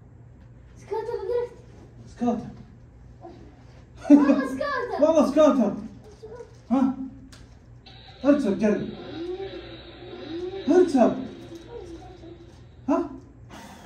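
A young boy speaks in a high voice.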